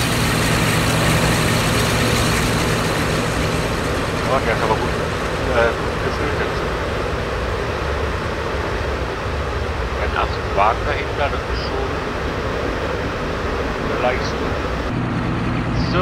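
Train carriages rumble steadily along the rails.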